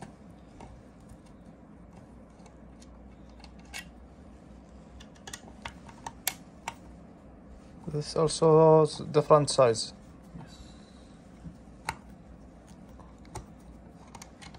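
A screwdriver clicks as it turns screws in a metal compressor head.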